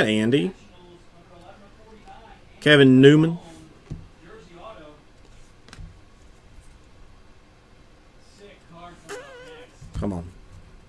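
Trading cards rustle and flick softly as they are shuffled through by hand.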